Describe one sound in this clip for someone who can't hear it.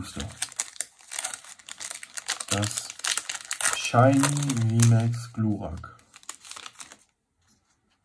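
A foil wrapper crinkles and rustles as it is torn open.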